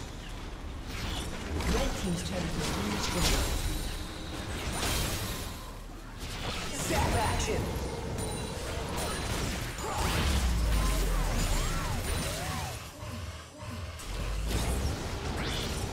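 Video game spells blast and crackle in a fast battle.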